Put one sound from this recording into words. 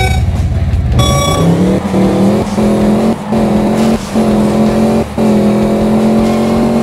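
A car engine revs up hard, dropping briefly with each gear change.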